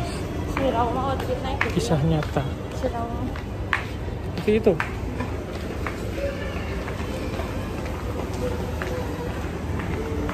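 A crowd murmurs in the background of a busy indoor space.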